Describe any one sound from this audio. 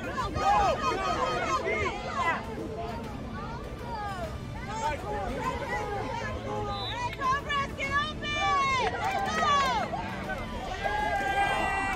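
Children shout and chatter excitedly outdoors.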